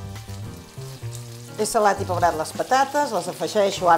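Potato pieces tumble into a hot pan.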